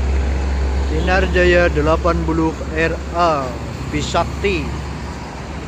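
A bus horn plays a rapid musical tune.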